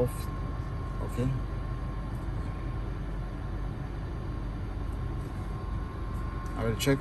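A fingertip taps lightly on a touchscreen.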